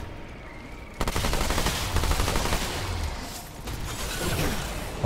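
A gun fires rapidly in bursts.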